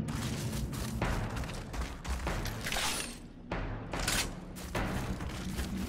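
Gunshots bang with a ringing echo.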